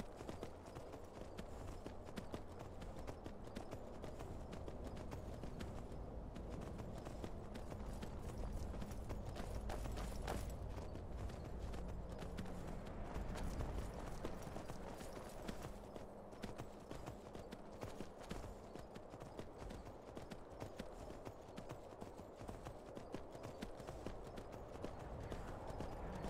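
Horse hooves clop steadily on snowy ground and stone.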